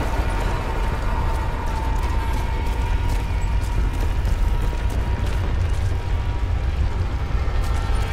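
Footsteps crunch on a stone floor.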